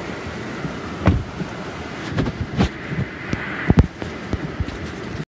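A windshield wiper thumps as it sweeps across the glass.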